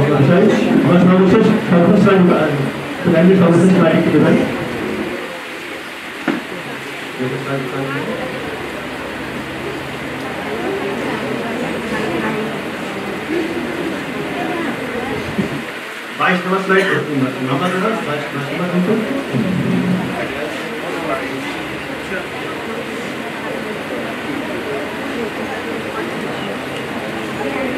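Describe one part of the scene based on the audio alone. A man speaks steadily through a microphone in a large room.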